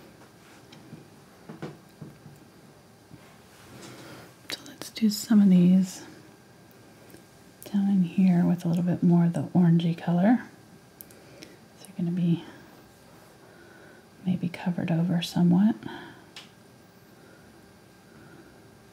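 A paintbrush softly dabs and strokes on canvas.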